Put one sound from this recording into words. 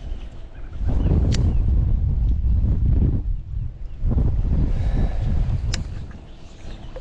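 Wind gusts across open water.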